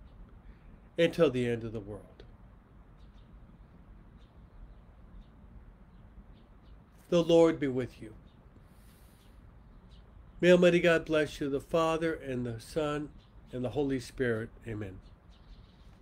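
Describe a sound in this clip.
A middle-aged man speaks calmly in short phrases with long pauses, heard through a microphone as on an online call.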